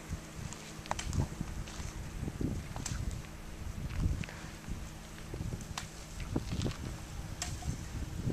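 A hoe thuds and scrapes into dry, stony soil.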